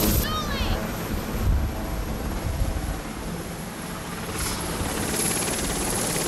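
A crowd of women cheers and chatters outdoors.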